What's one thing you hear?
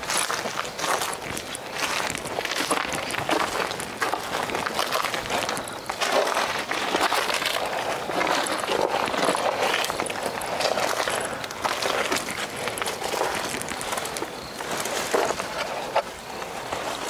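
Footsteps crunch through undergrowth.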